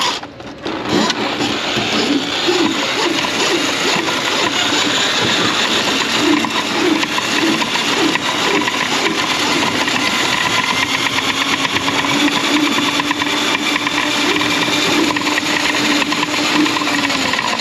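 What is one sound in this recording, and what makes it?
An electric drain auger whirs loudly and steadily.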